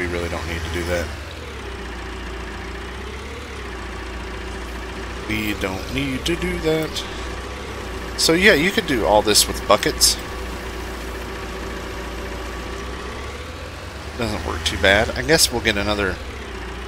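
A diesel engine hums steadily at low revs.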